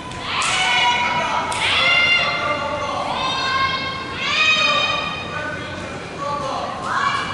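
Young people shout and cheer loudly in a large echoing hall.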